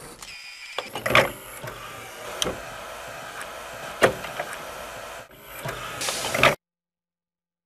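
A heavy stone mechanism grinds and clunks as it moves.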